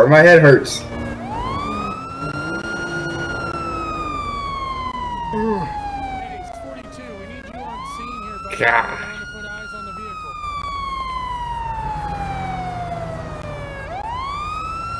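A police car siren wails up and down.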